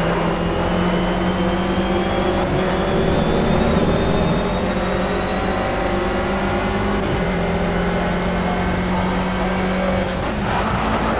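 A racing car engine roars steadily and rises in pitch as it speeds up.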